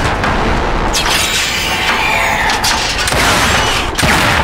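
A grenade explodes with a loud hissing blast.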